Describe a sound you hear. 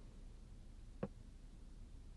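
A glass knocks lightly on a table.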